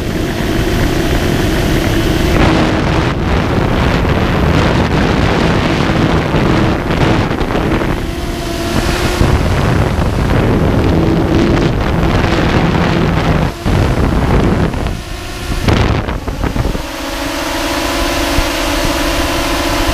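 Wind rushes past as the quadcopter flies.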